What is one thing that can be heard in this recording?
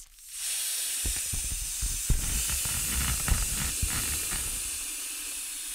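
A thin plastic inflatable crinkles and rustles under a man's hands close to a microphone.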